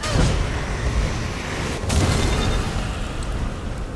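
Deep rumbling booms of magic blasts sound.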